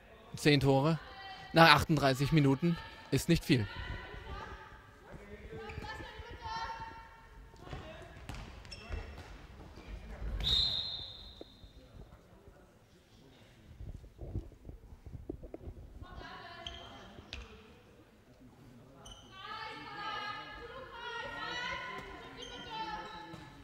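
Young women shout to each other in a large echoing hall.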